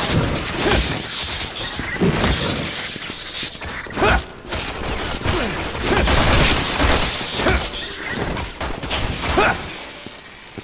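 Heavy blows and grunts thud in a close struggle.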